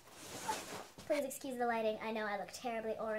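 A young girl sings close by.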